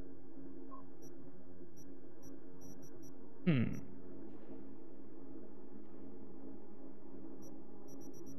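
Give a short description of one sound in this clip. Short soft menu ticks sound as a selection moves.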